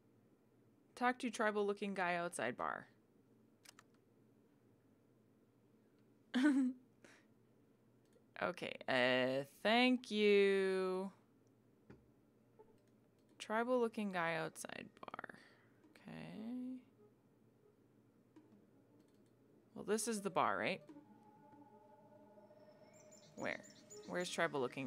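A young woman talks animatedly into a close microphone, in short bursts.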